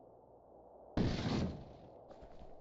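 A wooden door bursts open with a loud crack.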